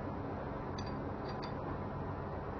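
A metal wrench clicks against an engine part.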